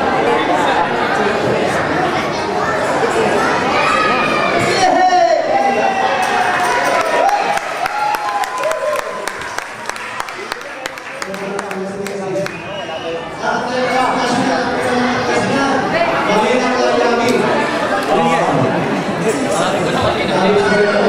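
A large group of men and women sing together through loudspeakers in a large hall.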